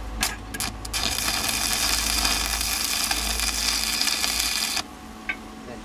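An electric welder crackles and sizzles steadily.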